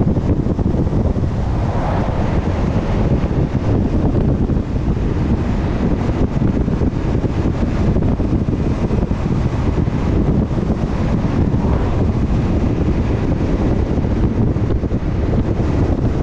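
Wind rumbles loudly and steadily against a moving vehicle.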